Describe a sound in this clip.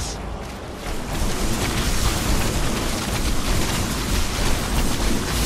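Laser beams zap and crackle in a busy battle.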